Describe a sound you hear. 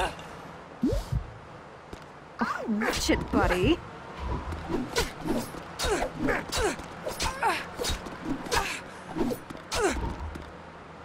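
Punches and blows land with sharp thuds again and again.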